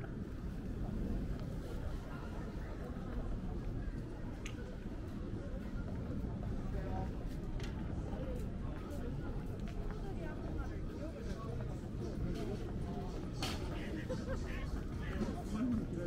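Footsteps tap on paving stones nearby.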